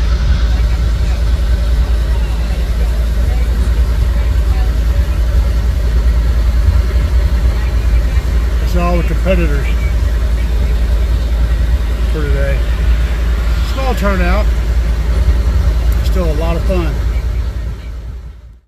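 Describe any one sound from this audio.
Loud, deep bass booms steadily from a car stereo outdoors.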